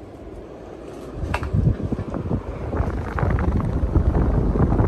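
Air from a spinning fan rushes and buffets close by with a low rumble.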